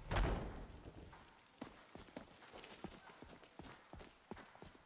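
Footsteps crunch on a dirt path outdoors.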